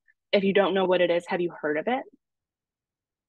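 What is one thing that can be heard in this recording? A woman speaks calmly through a microphone, as if on an online call.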